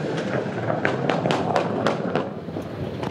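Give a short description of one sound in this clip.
Pneumatic wheel guns whir in quick sharp bursts.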